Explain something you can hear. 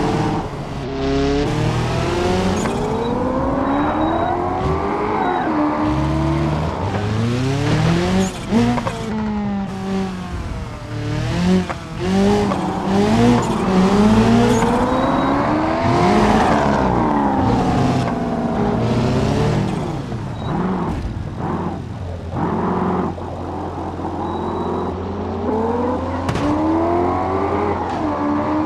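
A car engine revs hard, rising and falling in pitch as the gears change.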